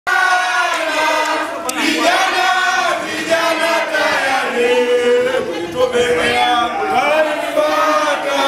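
A group of men and women sing and chant together loudly.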